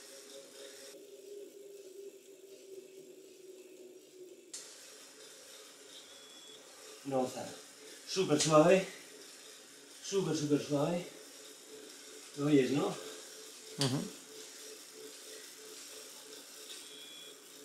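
A bicycle trainer whirs softly.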